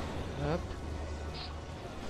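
Steam hisses from a vent.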